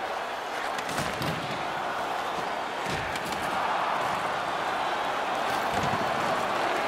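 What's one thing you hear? A hockey stick knocks a puck.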